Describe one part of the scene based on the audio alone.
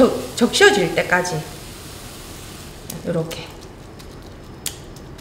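A spatula scrapes and stirs food in a metal pan.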